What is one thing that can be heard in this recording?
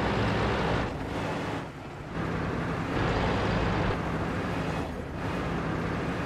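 A heavy tank engine rumbles and clanks steadily.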